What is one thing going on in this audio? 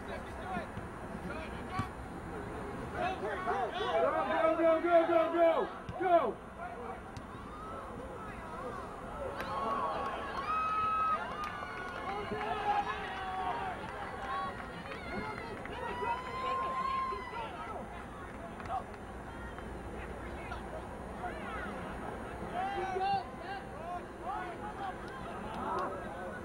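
Men shout out across an open field.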